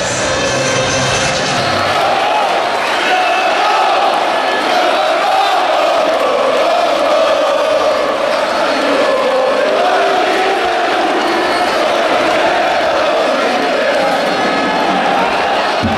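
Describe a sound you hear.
A large crowd of men and women chants loudly in unison, echoing around a stadium.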